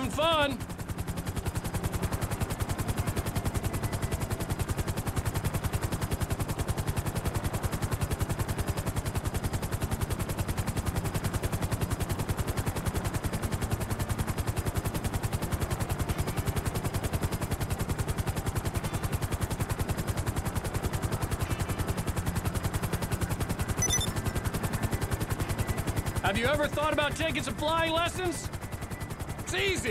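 A helicopter's rotor chops rapidly and steadily overhead.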